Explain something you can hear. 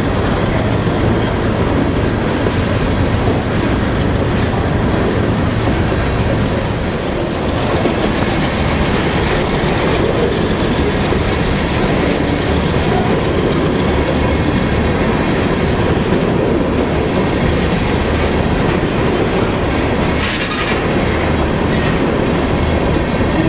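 A freight train rumbles and clatters steadily past up close.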